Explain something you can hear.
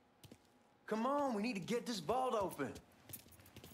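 A man speaks urgently.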